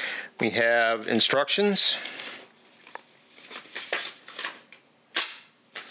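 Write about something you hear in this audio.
Paper crinkles as a leaflet is unfolded.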